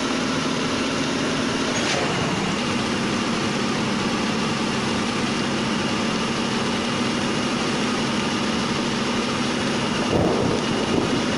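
Rain patters steadily on a windscreen.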